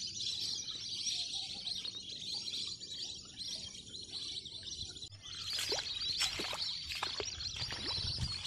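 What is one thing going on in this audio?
A flock of birds calls as it flies overhead.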